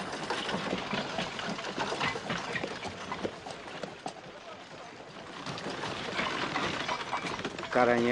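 A wooden cart rattles and creaks as it rolls.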